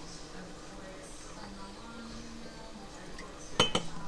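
Liquid pours from a bottle into a spoon.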